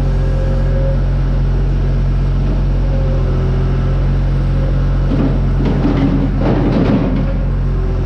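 Material tumbles from a loader bucket into a spreader.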